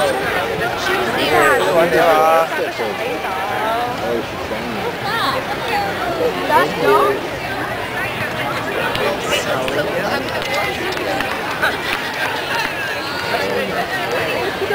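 A crowd of spectators chatters and calls out close by, outdoors.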